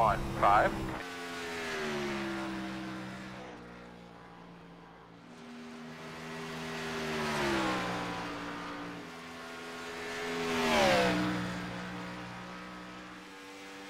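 A race car engine drones past at speed, its pitch dropping as each pass goes by.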